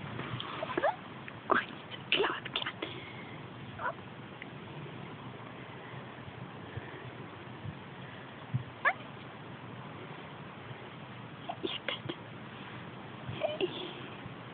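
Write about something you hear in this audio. A cat meows now and then, close by.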